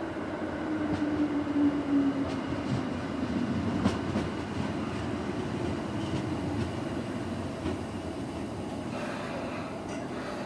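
An electric commuter train rolls into a station and slows to a stop.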